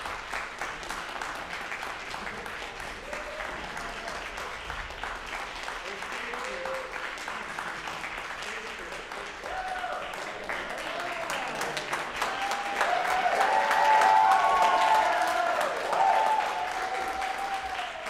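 A choir of young men and women sings together in a large echoing hall.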